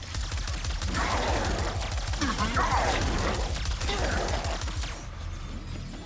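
Rapid energy blasts fire in a sci-fi video game.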